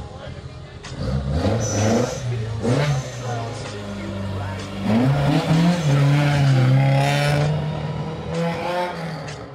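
A rally car engine revs loudly, rising and falling in pitch as it pulls away.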